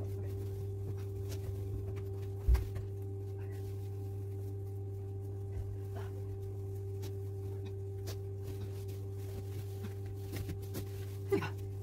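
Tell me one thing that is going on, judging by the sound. A bedspread rustles as it is shaken out and spread over a bed.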